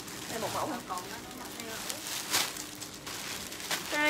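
Plastic wrapping crinkles and rustles as fabric is handled.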